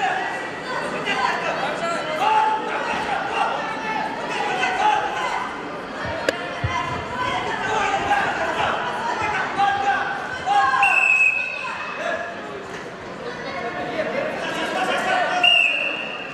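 A crowd of children shouts and cheers in a large echoing hall.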